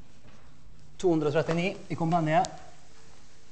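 A man speaks loudly in a large echoing room.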